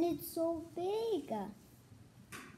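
A young girl speaks in a lively, sing-song voice close by.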